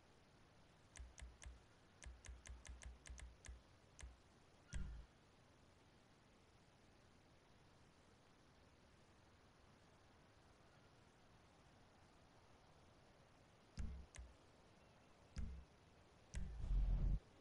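Short game menu clicks tick in quick bursts as options change.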